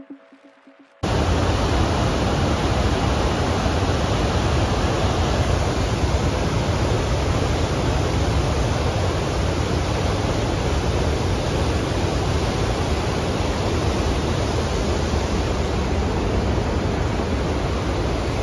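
A fast river rushes loudly over rocks.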